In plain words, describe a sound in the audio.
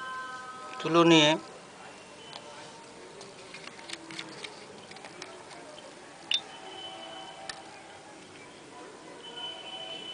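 A small glass bottle clinks as it is handled.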